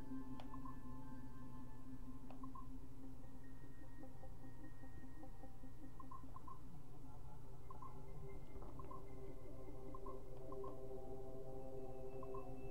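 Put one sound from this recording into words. Soft electronic tones chime and hum in a looping pattern.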